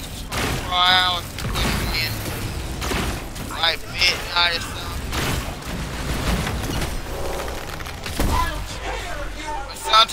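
Energy weapons fire and blast in bursts.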